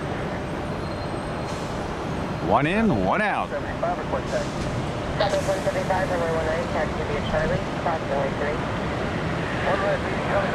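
A jet engine hums steadily in the distance.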